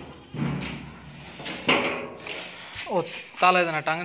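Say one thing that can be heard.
A metal latch clicks and rattles.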